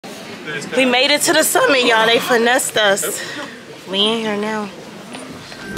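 A young woman talks excitedly close to a microphone.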